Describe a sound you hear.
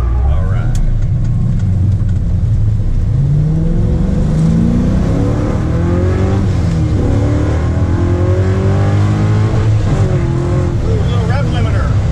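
A car engine roars close by, rising in pitch and dropping again with each gear change.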